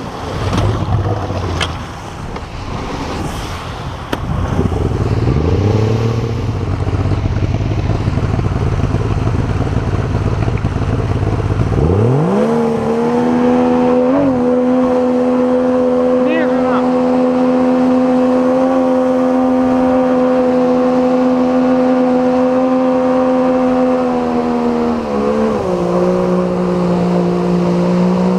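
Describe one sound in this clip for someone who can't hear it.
River water rushes and splashes against a boat.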